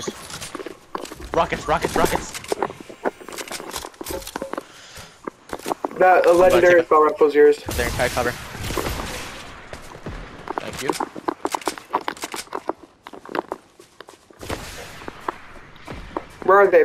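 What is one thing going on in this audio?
Footsteps patter quickly across grass.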